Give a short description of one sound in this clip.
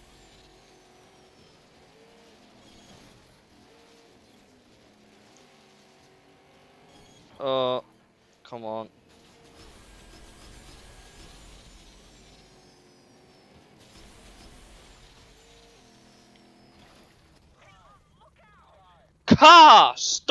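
A racing car engine hums and revs steadily.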